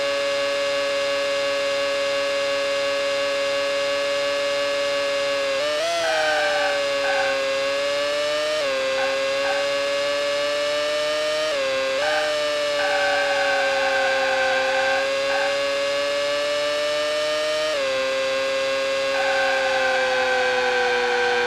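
A racing car engine whines steadily at high pitch, dipping briefly with each gear change.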